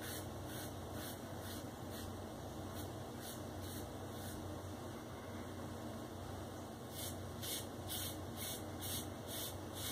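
A razor scrapes in short, quick strokes over a lathered scalp.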